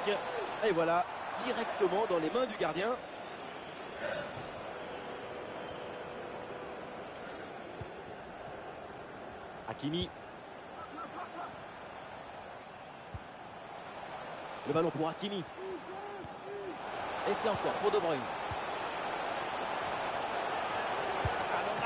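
A stadium crowd murmurs and cheers in the background.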